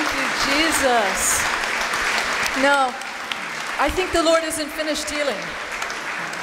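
People in the audience whoop and cheer.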